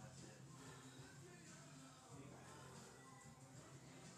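A barbell clanks onto a metal rack.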